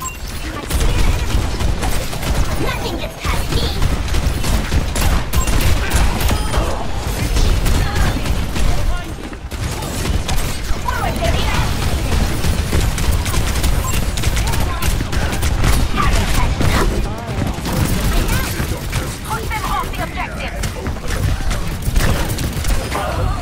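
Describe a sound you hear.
Gunfire from a video game crackles and bursts in rapid volleys.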